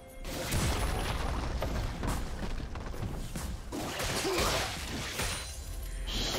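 Game combat effects clash and crackle.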